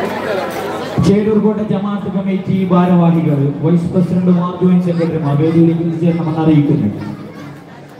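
A man chants in a long, drawn-out melody through a loudspeaker, echoing outdoors.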